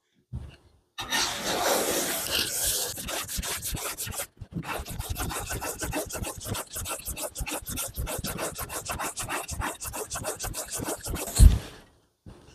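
A hand plane shaves wood in quick, rasping strokes.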